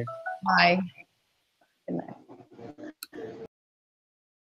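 A young woman speaks cheerfully through an online call microphone.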